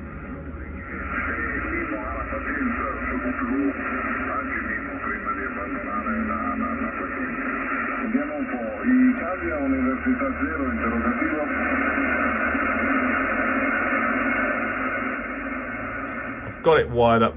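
A man's voice speaks through a radio loudspeaker, thin and crackly.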